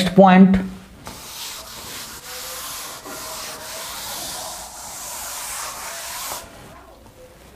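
A duster rubs and swishes across a chalkboard.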